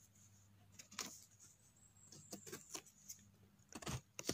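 A knife scrapes and cuts a mushroom in short, crisp strokes.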